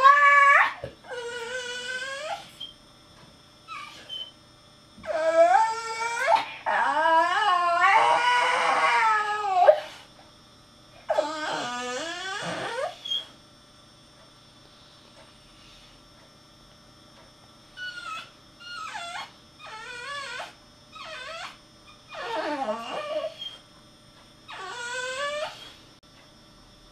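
A dog howls in long, wavering cries that rise and fall, with pauses between them.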